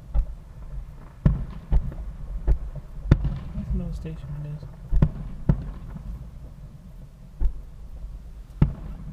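Distant fireworks boom and pop at irregular intervals outdoors.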